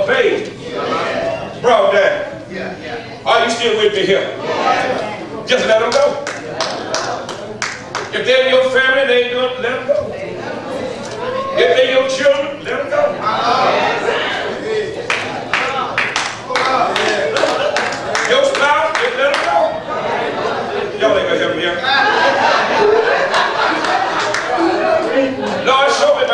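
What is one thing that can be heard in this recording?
A man preaches with animation through a microphone in an echoing hall.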